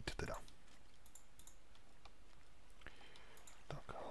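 Water trickles and flows nearby.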